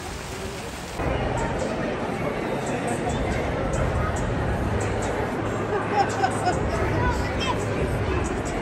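People's voices murmur in a large echoing hall.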